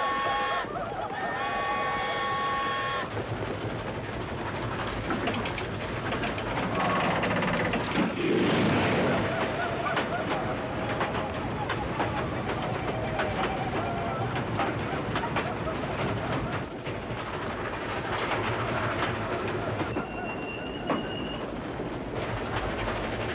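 A steam train rumbles and clatters along the tracks.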